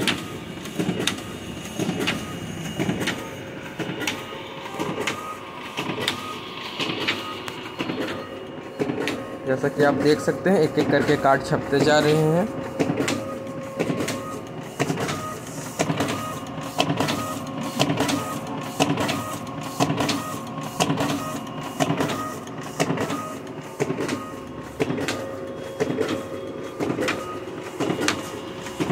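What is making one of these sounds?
A printing machine runs with a fast, steady, rhythmic clatter.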